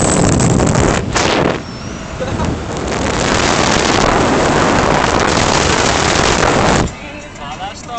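Wind roars loudly past a fast-moving car.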